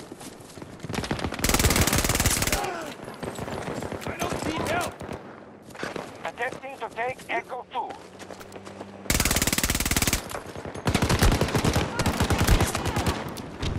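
Rapid gunfire bursts out loudly in short volleys.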